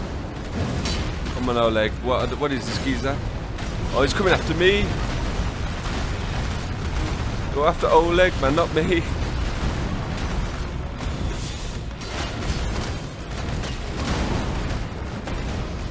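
Swords clash and heavy blows thud amid rumbling battle noise.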